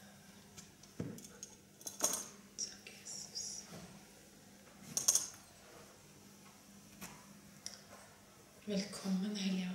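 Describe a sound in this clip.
A young woman speaks quietly through a microphone in an echoing room.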